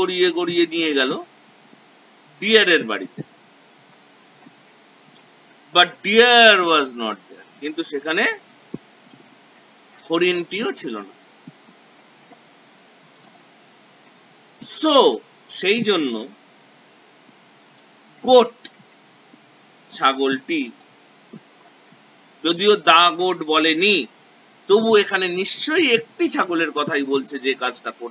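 A middle-aged man speaks close to a microphone in short bursts with pauses.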